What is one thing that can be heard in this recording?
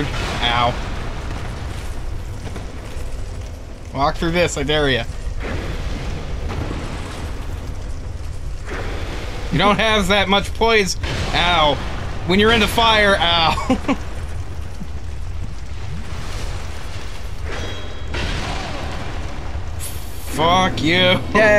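Fire crackles and roars in a game.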